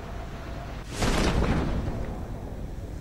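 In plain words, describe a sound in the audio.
A parachute snaps open with a loud whoosh.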